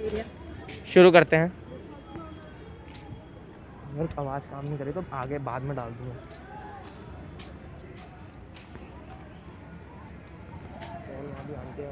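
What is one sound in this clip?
Sandals slap on pavement.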